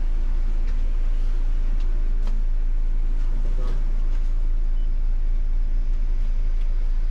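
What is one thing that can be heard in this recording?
Clicks and rattles sound inside a moving bus.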